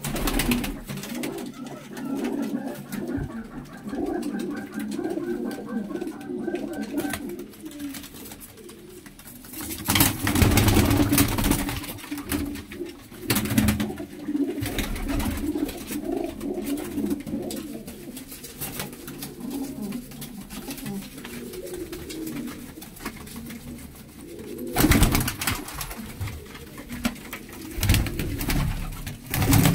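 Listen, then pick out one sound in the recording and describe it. Pigeons coo softly and steadily close by.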